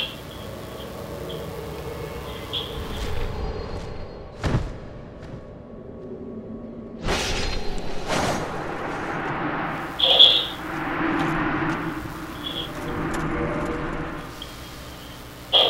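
A crackling magic blast bursts and fades.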